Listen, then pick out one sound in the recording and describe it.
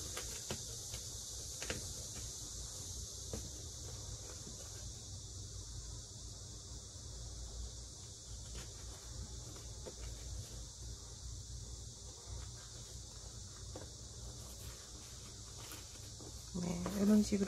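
Paper rustles and crinkles as hands fold it.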